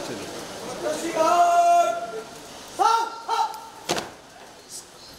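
Men call out commands loudly.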